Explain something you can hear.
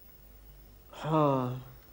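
A man answers briefly.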